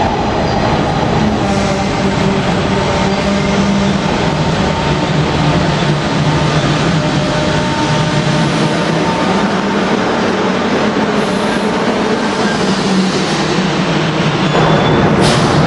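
A train rumbles and clatters past close by.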